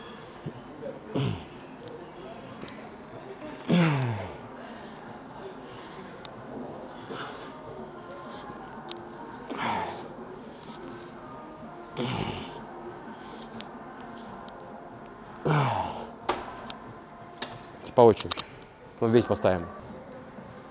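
A man grunts loudly with effort, again and again.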